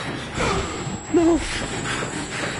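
A young man cries out in fright.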